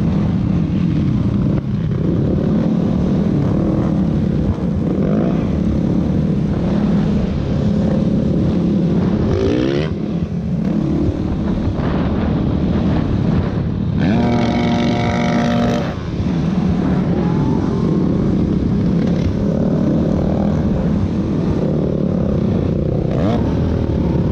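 A dirt bike engine roars loudly up close, revving up and down.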